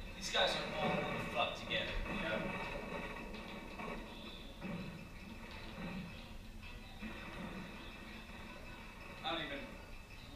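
Young men talk and laugh close to a microphone.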